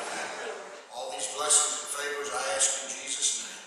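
A woman speaks into a microphone over a loudspeaker.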